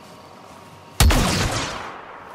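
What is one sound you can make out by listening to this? A rifle fires a single loud shot that rings out and fades.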